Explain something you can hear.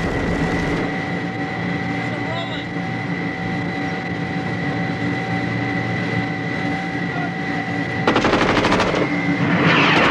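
Aircraft engines drone steadily and loudly all around.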